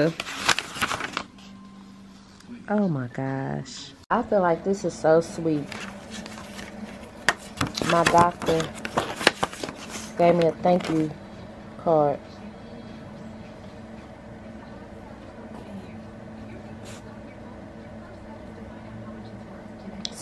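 Paper rustles and crinkles as pages are turned and handled.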